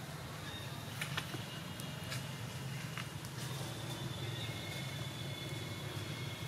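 Dry leaves rustle and crackle as a small monkey scrambles over the ground.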